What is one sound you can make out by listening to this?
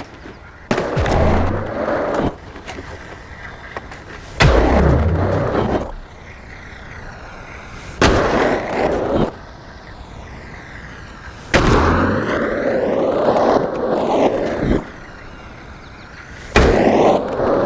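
A skateboard lands hard with a thump.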